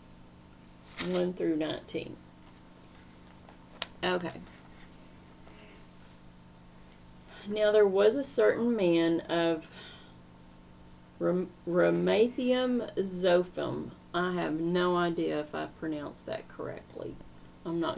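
A middle-aged woman speaks calmly and close up, in short bursts with pauses.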